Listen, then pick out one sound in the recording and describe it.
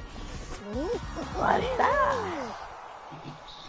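A cheerful electronic jingle plays with sliding, bouncy notes.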